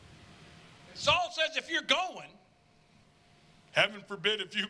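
A middle-aged man speaks with animation through a microphone, heard over a loudspeaker.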